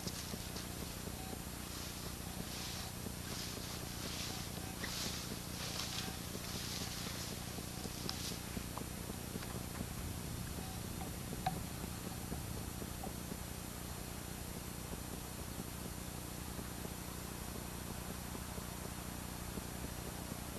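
Wind rustles through tall grass outdoors.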